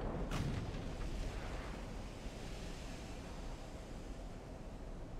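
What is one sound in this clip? Waves wash steadily around a ship at sea.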